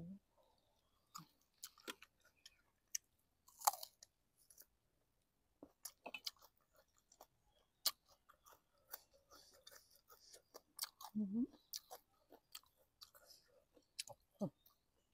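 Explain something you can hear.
A young woman chews crunchy food noisily close to a microphone.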